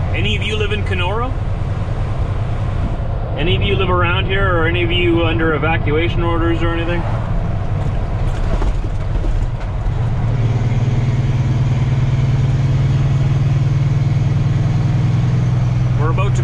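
A heavy truck engine rumbles steadily from inside the cab.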